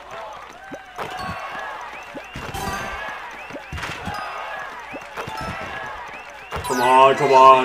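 Fireworks burst with loud pops.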